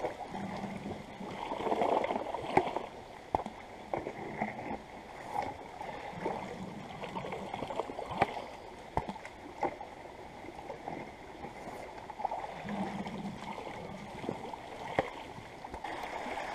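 Water splashes and sloshes.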